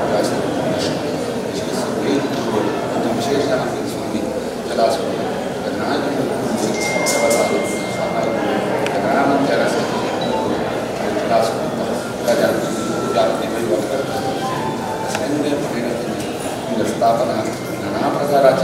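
A crowd of men murmurs and chatters close by.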